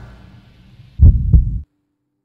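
A heavy metal door slams shut with a deep boom.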